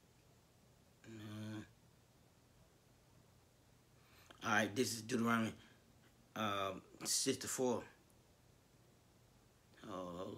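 A man speaks slowly and calmly close by, in short phrases with pauses.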